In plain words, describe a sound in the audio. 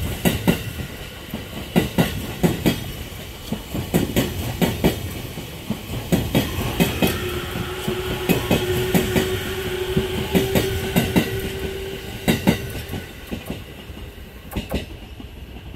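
A train rolls past close by, its wheels clacking rhythmically over rail joints.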